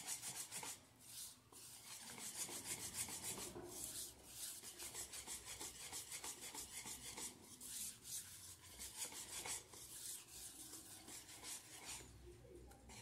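A wire whisk scrapes and clicks rapidly against a bowl.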